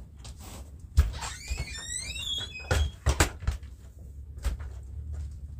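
Footsteps thud nearby.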